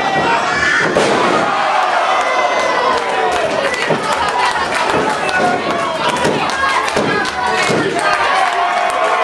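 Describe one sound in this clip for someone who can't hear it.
A crowd of men and women shouts and cheers in a large echoing hall.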